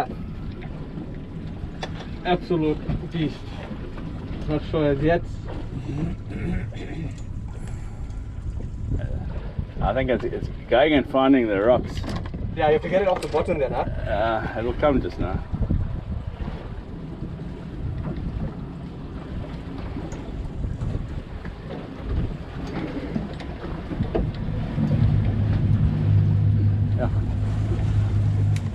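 A boat engine hums low and steadily, then grows louder.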